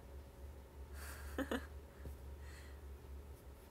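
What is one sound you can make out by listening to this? A young woman laughs softly, close to the microphone.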